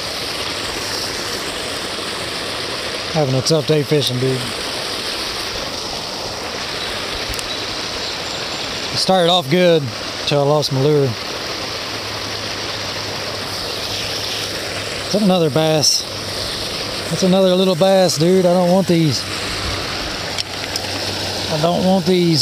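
Water pours steadily into a pond.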